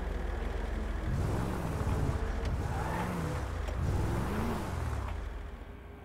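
A truck engine revs up and down several times.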